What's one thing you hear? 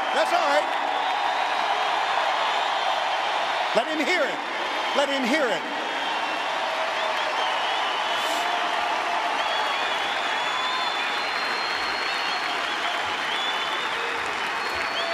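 People in a crowd whistle and shout with excitement.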